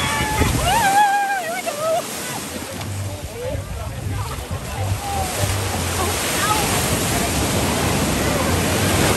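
Waves wash and splash against rocks throughout.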